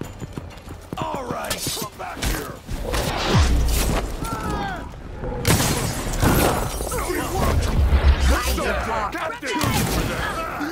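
Metal blades clash and scrape in a fight.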